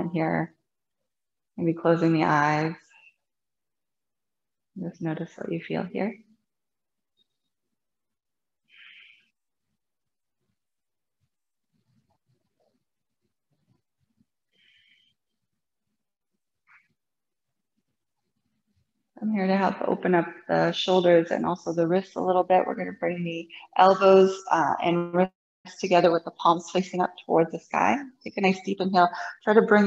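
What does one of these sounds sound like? A woman speaks calmly and clearly into a close microphone, pausing often.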